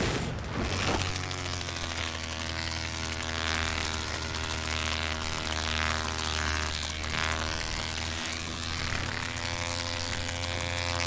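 Insect wings buzz with a steady droning hum.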